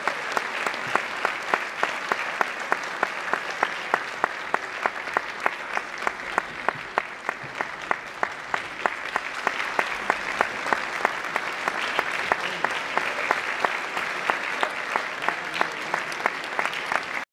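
A drum taps a steady, quick beat.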